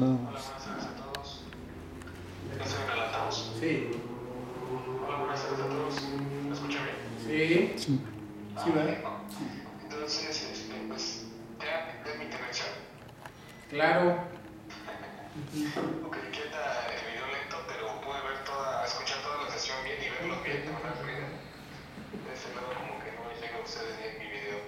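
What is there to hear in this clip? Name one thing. A man speaks calmly nearby in a small room.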